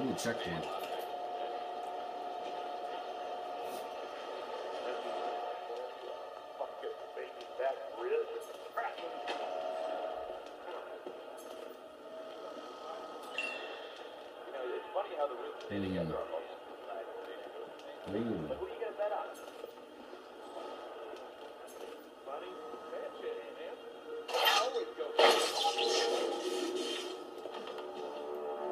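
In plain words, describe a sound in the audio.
Video game music and sound effects play from television speakers in a room.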